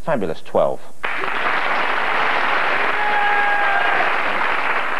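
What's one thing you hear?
Several men laugh heartily.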